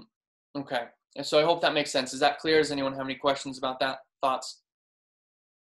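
A young man speaks calmly and closely into a microphone.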